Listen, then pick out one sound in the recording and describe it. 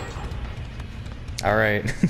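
Footsteps run over a hard floor.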